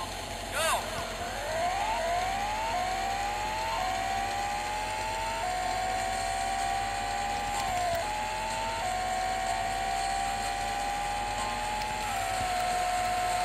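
A video game car engine revs up through rising gear shifts.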